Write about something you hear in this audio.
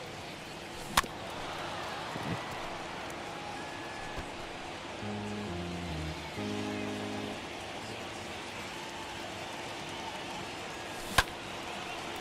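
A pitched baseball smacks sharply into a catcher's mitt.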